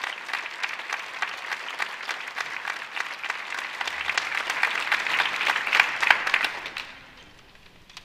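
An audience applauds loudly in a large hall, then the clapping dies away.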